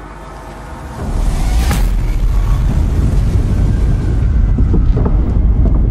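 A huge explosion booms and rumbles in the distance.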